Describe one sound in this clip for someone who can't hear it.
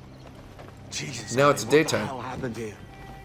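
A man speaks with surprise, close by.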